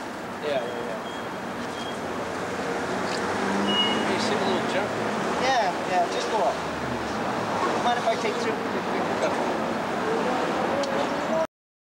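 A man talks cheerfully close by, outdoors.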